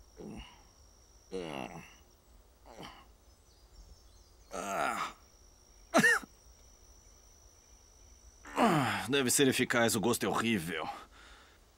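A man groans and sobs in distress nearby.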